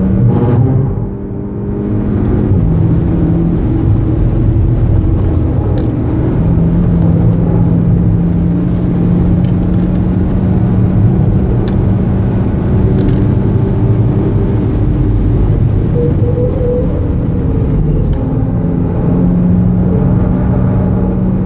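Tyres rumble on the road at speed.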